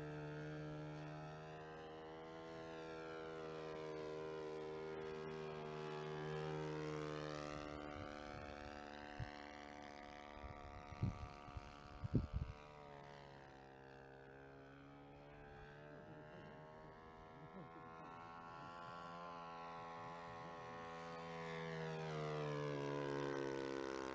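The engine of a radio-controlled model biplane drones overhead, its pitch rising and falling as it passes.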